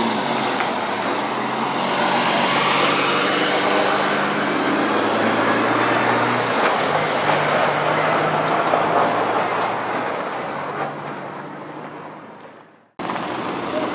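A diesel semi-truck drives past close by.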